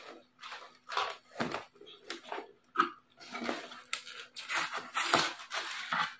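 Plastic packaging rustles and crinkles in a man's hands.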